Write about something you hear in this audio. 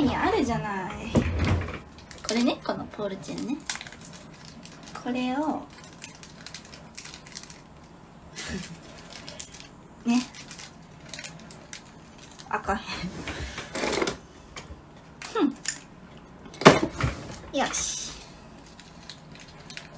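Small plastic items click and rustle in a young woman's hands.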